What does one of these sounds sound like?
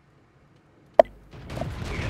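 A tank cannon fires with a sharp boom.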